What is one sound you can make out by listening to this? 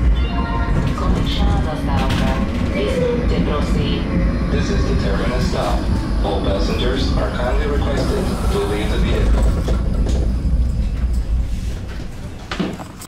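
A tram rumbles and rattles along its rails, heard from inside.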